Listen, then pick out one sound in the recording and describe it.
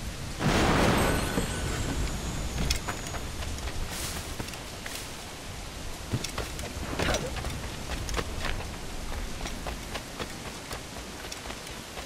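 Footsteps run quickly over wooden boards and soft ground.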